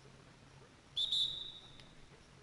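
A referee's whistle blows a short, sharp blast.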